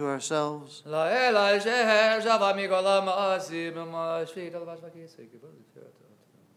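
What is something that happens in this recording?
A man chants in a sustained, singing voice through a microphone in an echoing room, then falls silent.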